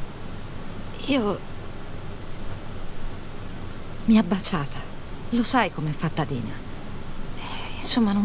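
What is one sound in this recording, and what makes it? A young woman speaks quietly and hesitantly.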